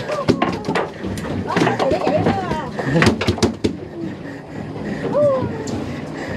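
Waves slap against the hull of a small boat.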